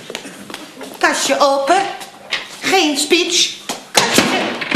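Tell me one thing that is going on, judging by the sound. An older woman speaks loudly and with animation.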